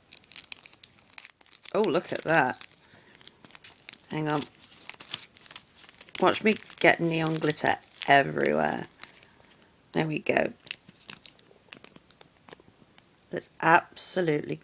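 Plastic bags crinkle as they are handled close by.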